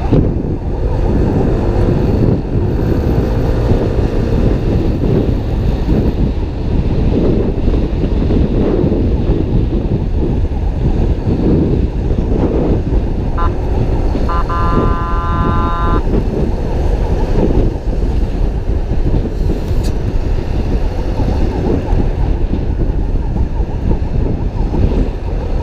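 Wind rushes and buffets loudly past a fast-moving motorcycle.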